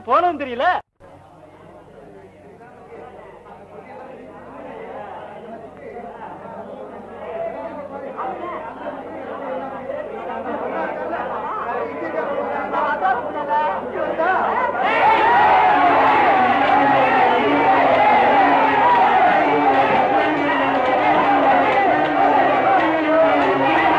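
A crowd of men shouts, growing louder as it comes closer.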